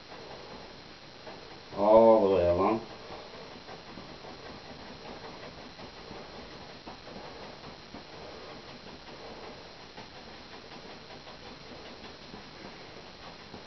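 A brush softly scrapes across canvas.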